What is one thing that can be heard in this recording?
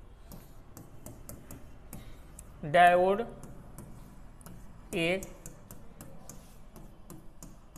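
A marker squeaks and taps on a writing board.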